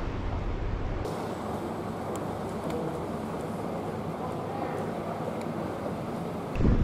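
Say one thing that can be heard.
A car engine hums as it rolls slowly along a street.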